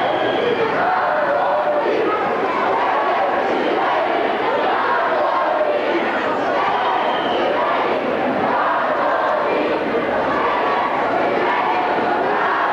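A large crowd of men and women murmurs and chatters all around, close by, outdoors.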